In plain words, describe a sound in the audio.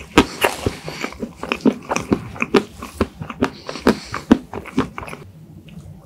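Cream and cake squish between fingers close to the microphone.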